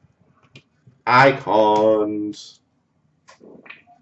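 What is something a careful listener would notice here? Trading cards slap down onto a pile.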